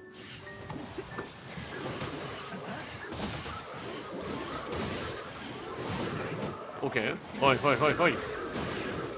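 Blades clash and slash rapidly in a fight.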